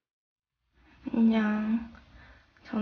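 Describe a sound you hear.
A young woman speaks briefly close by.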